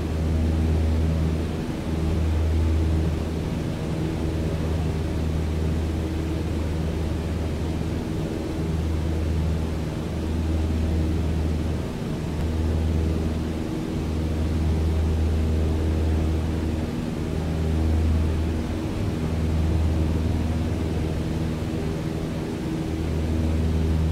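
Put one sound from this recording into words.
A single-engine propeller plane's piston engine drones in flight at cruising power, heard from the cockpit.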